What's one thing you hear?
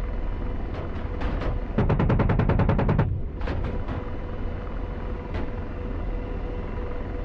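A helicopter engine and rotor roar steadily from inside the cockpit.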